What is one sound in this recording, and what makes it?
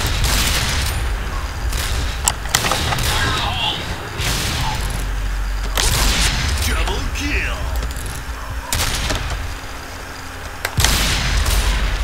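Sniper rifle shots crack loudly, each with a short echo.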